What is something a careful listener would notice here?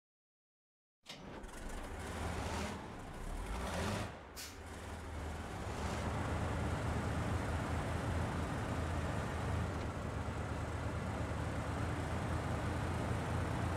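A heavy truck engine rumbles and revs up as the truck pulls away.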